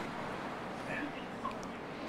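A woman laughs softly close by.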